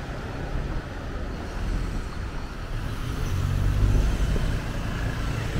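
A pickup truck's engine rumbles as it drives past close by.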